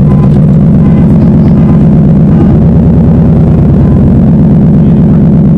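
A car engine idles nearby with a steady low rumble.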